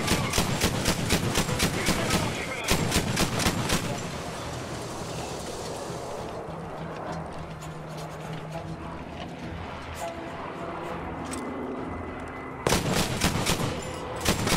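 A heavy gun fires in rapid bursts of loud shots.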